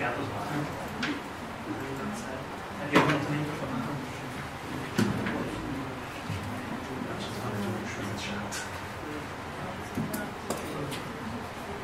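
A young woman talks quietly near a microphone.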